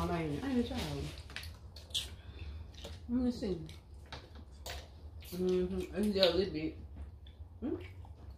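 Shells crack as people eat with their hands.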